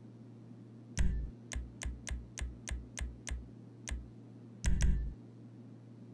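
Game menu clicks tick in quick succession.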